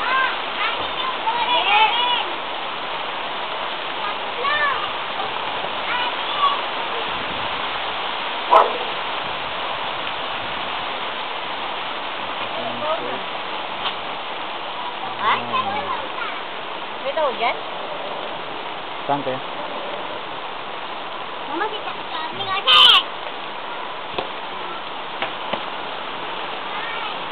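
Rain falls on a wet street.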